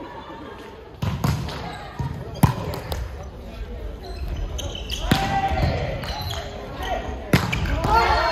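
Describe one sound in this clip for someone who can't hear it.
A volleyball is struck with sharp slaps that echo around a large hall.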